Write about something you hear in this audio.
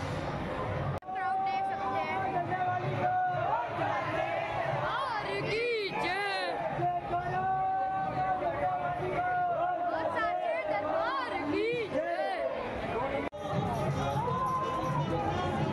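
A large crowd chants and sings loudly together in an echoing hall.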